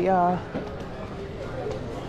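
A suitcase's wheels roll across a hard floor.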